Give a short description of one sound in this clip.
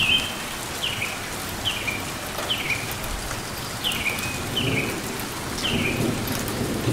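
A small bird chirps repeatedly with short, sharp, falling notes close by.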